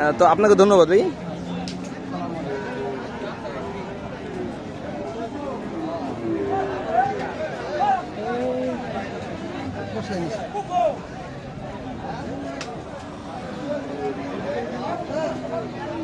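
Many people talk in a busy crowd outdoors.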